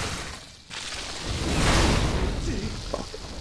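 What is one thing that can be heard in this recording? Fire crackles and bursts with a whoosh.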